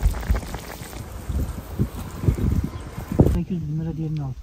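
A man bites into a crisp watermelon.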